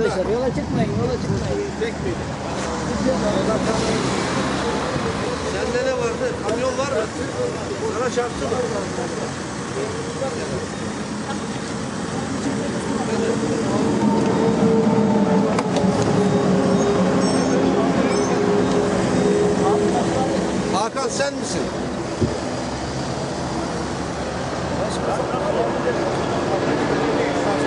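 Several men talk with one another outdoors nearby.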